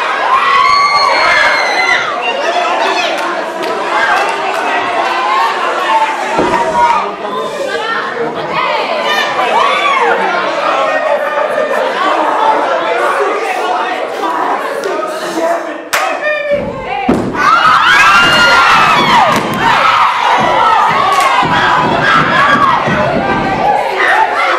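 A song with a singing voice plays loudly over loudspeakers.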